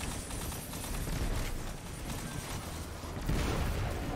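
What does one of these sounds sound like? A gun fires in quick bursts.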